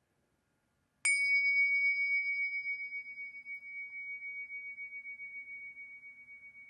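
Two small cymbals chime together and ring out, slowly fading.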